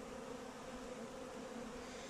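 Honey bees buzz around a hive entrance.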